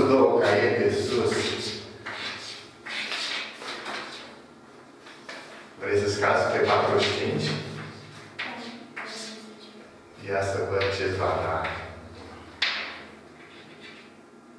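An elderly man speaks calmly, explaining.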